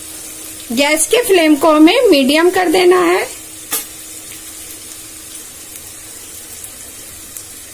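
Onions sizzle softly in hot oil in a pan.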